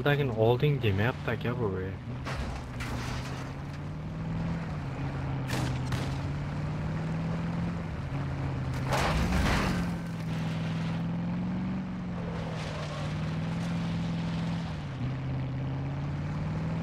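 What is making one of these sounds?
A truck engine hums steadily, rising and falling in pitch as it drives over rough ground.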